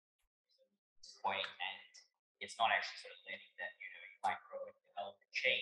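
A man speaks calmly into a microphone, lecturing.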